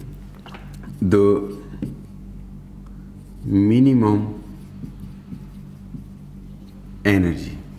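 A man speaks slowly in short, drawn-out phrases close by.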